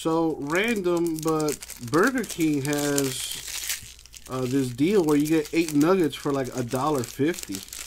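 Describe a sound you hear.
A foil wrapper crinkles as it is torn open.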